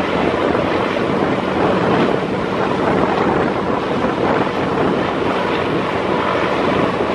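Water churns and splashes at a boat's bow.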